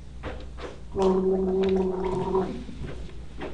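A man sings a short steady note.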